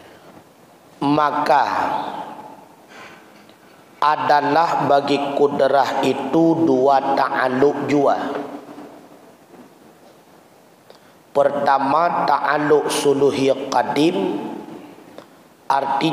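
A man speaks calmly through a microphone in an echoing room, pausing between phrases.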